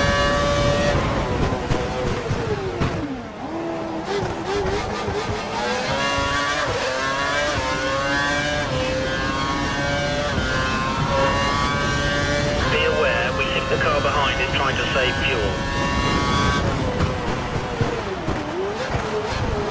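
A racing car engine slows and downshifts before a corner.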